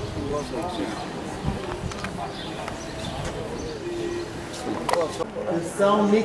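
A middle-aged man talks calmly close by, outdoors.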